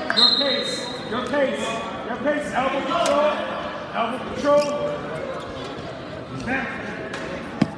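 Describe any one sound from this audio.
Sneakers squeak on a mat.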